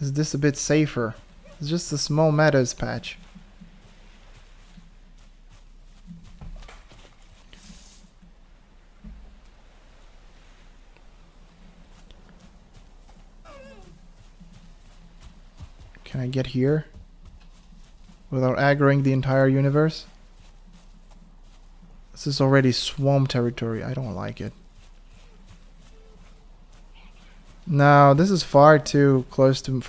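Footsteps pad quickly through grass.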